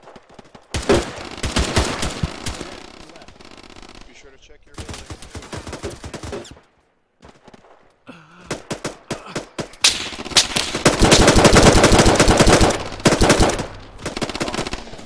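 Rapid gunfire cracks in bursts.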